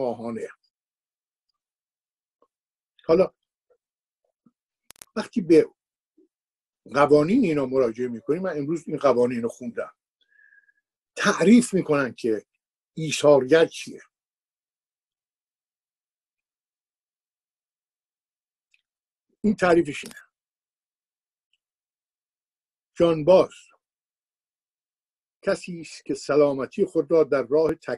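An elderly man speaks calmly in short bursts through a microphone, with long pauses.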